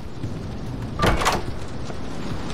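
A wooden door swings open with a bang.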